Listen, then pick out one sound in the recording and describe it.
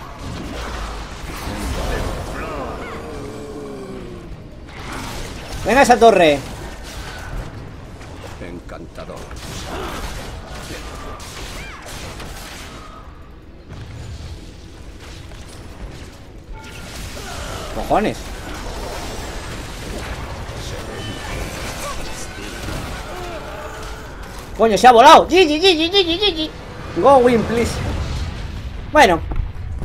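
Game spells crackle and whoosh in a busy battle.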